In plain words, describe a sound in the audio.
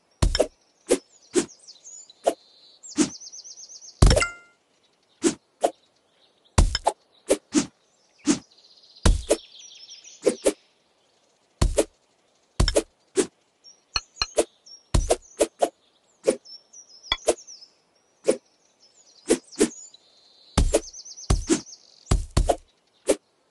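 Game chimes and jingles ring out.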